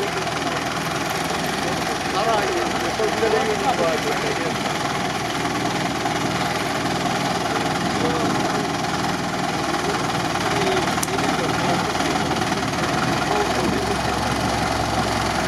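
Water and mud splash and churn under heavy tyres.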